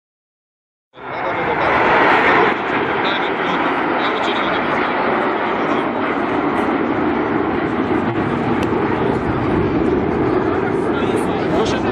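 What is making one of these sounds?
Jet planes roar overhead in a steady rush.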